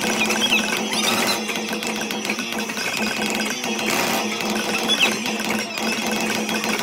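Upbeat game music plays loudly from a loudspeaker.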